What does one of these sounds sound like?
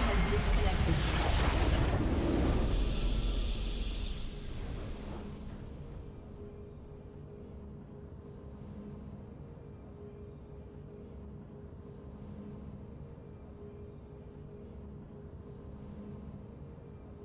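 A soft, steady game tune hums in the background.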